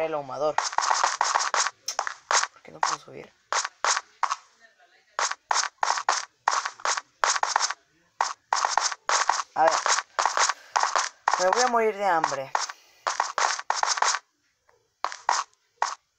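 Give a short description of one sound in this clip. A pickaxe chips steadily at stone in quick, repeated crunching blows.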